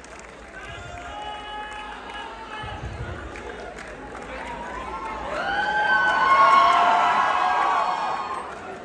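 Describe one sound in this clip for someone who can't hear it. A crowd of young people chatters and calls out in a large echoing hall.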